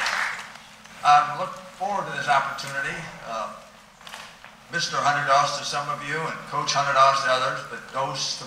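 An elderly man speaks calmly into a microphone, amplified through loudspeakers in a large echoing hall.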